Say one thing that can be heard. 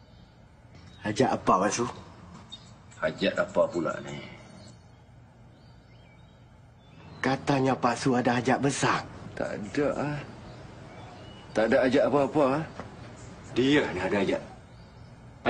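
An older man answers calmly, close by.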